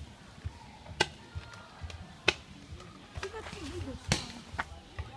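Paintball markers fire sharp pops.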